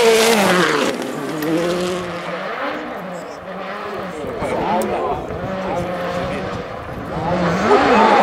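A rally car engine whines in the distance.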